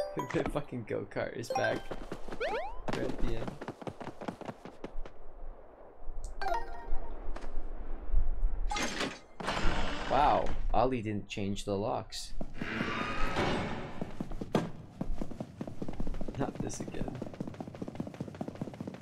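Cheerful video game music and sound effects play.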